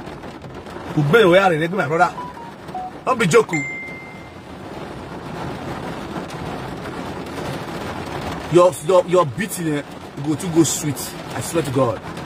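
A man talks with animation, close to a phone microphone.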